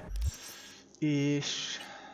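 A menu opens with a short electronic chime.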